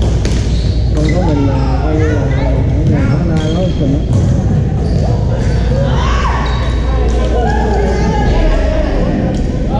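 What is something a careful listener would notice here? Men and women call out and talk across the court at a distance.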